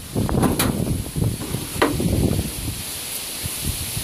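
A side-by-side utility vehicle's plastic cargo bed clunks as it tips up.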